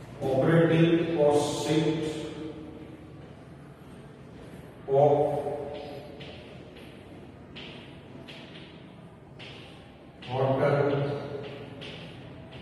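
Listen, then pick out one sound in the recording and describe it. A man speaks calmly in short bursts in a room.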